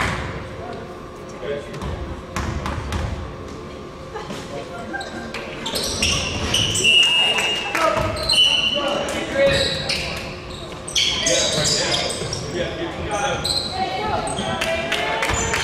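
A basketball bounces on a hardwood court in a large echoing gym.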